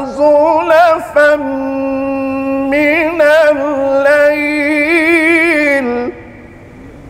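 A man chants in a long, wavering melodic call through a microphone and loudspeaker.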